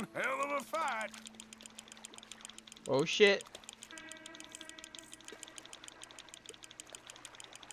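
A fishing reel clicks rapidly as line is wound in.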